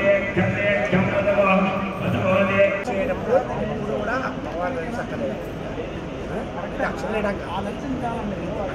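Several men and women talk in the background.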